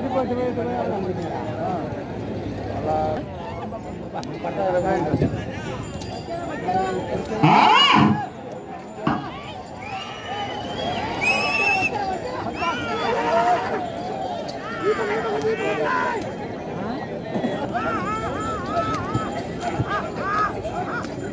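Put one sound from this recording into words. Men shout loudly nearby to urge on the bulls.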